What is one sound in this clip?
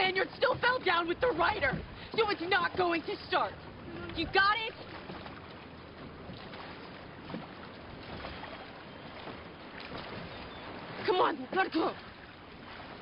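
A young woman speaks angrily and sharply up close.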